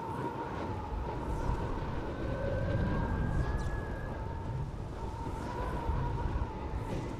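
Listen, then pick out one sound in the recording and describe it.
A pulley whirs steadily along a taut cable.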